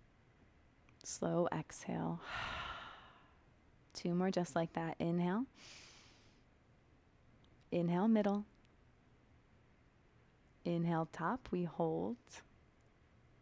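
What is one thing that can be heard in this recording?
A young woman speaks calmly and clearly into a nearby microphone in short phrases.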